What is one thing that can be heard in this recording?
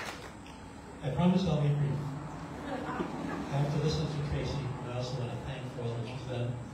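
A middle-aged man speaks calmly into a microphone, heard through a loudspeaker outdoors.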